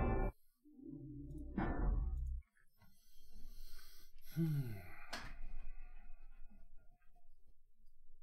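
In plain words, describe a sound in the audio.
A man talks close into a microphone in a calm voice.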